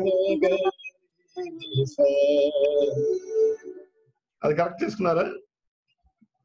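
A woman sings a melody over an online call.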